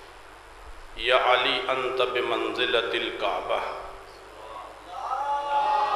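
A man speaks with feeling into a microphone over a loudspeaker.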